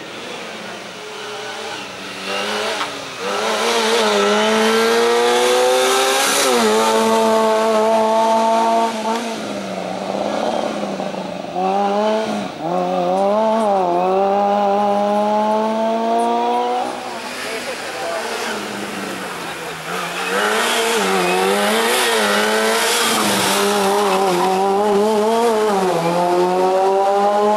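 A small car engine revs hard, its pitch climbing and dropping with each gear change.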